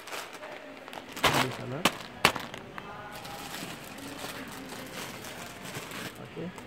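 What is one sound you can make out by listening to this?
Plastic wrapping crinkles and rustles as packages are handled.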